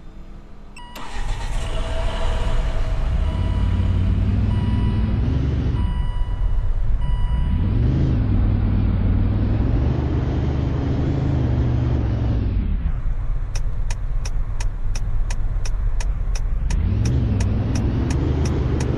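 A car engine starts, revs up and down, and idles.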